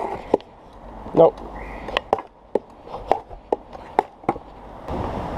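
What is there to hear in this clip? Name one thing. A scooter deck knocks sharply as it lands on steps.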